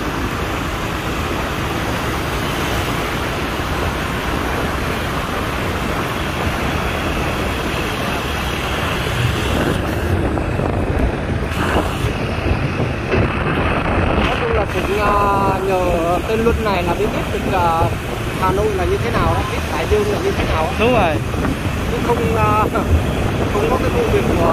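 A motorbike engine hums steadily.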